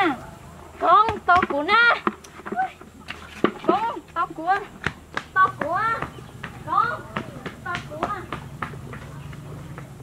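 A young woman sings close by.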